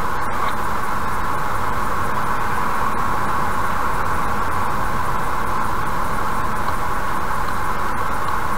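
Tyres hum steadily on a highway as a car drives along.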